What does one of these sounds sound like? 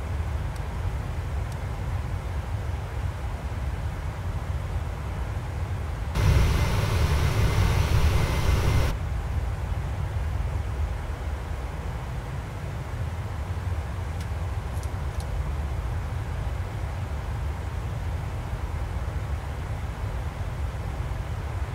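A jet engine hums low and steadily.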